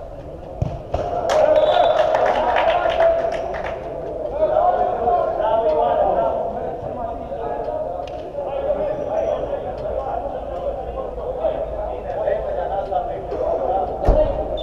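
Men shout to each other during play, echoing in a large hall.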